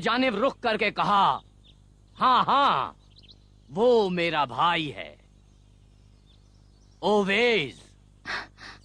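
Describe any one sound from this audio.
An elderly man declaims loudly in a rising and falling, sing-song voice.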